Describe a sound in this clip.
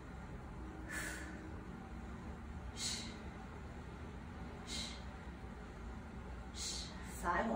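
A woman breathes out sharply in short bursts.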